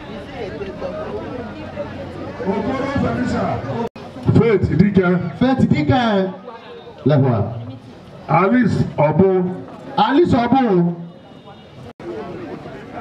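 A large crowd of women chatters and murmurs outdoors.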